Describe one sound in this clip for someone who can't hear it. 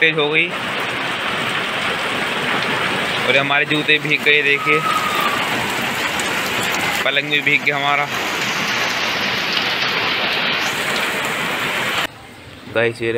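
Heavy rain pours steadily and splashes on water.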